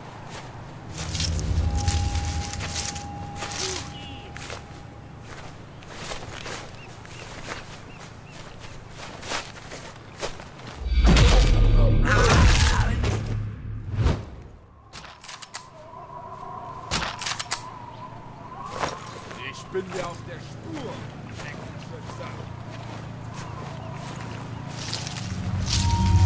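Leaves rustle as a soldier crawls through bushes.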